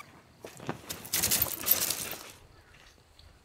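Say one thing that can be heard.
Tent fabric rustles and flaps as it is pulled taut.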